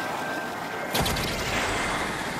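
A loud blast booms suddenly.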